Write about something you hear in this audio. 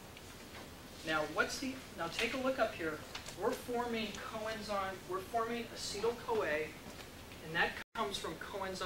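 A man speaks steadily in a lecturing tone, heard from a distance with some echo.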